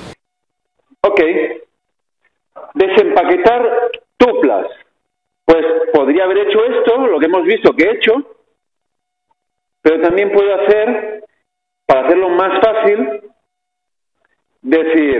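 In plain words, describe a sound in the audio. A man lectures through a microphone, speaking calmly with pauses.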